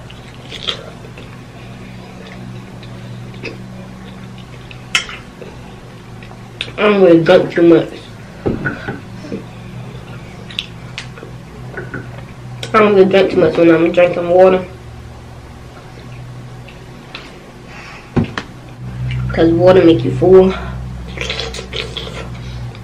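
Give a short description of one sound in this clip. A young woman chews food with wet, smacking sounds.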